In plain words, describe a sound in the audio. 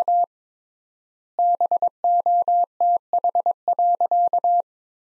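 A telegraph key taps out Morse code in quick beeping tones.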